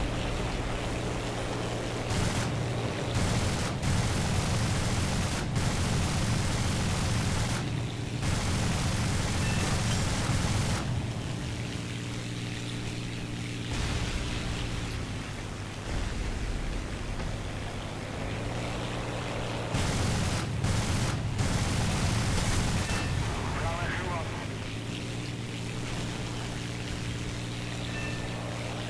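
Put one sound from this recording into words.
A propeller plane's engine drones steadily, rising and falling in loudness.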